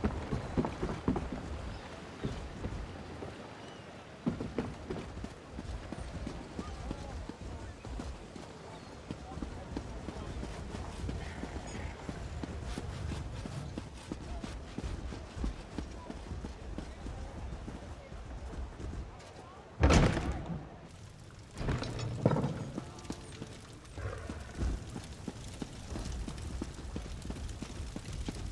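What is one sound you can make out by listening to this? Footsteps patter quickly on wooden and stone floors.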